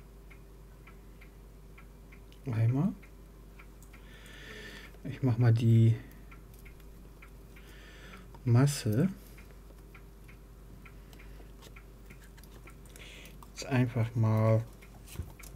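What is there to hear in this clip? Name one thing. Solder sizzles softly under a hot soldering iron.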